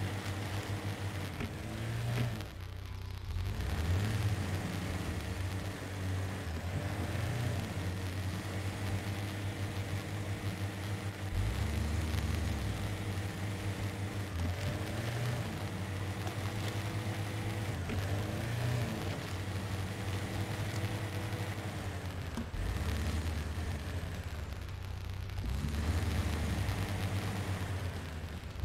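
An off-road vehicle's engine rumbles and revs as it climbs over rocks.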